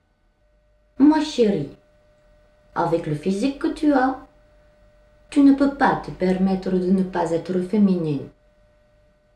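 A young woman speaks calmly and earnestly close by.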